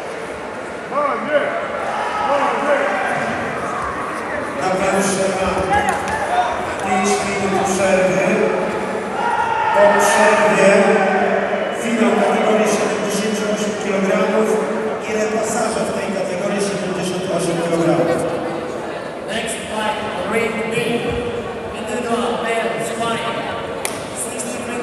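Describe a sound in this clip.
A crowd of men and women shouts and cheers loudly in a large echoing hall.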